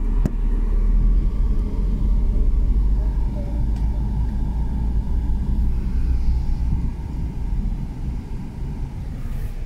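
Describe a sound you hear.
A car engine rumbles low as the car drives slowly.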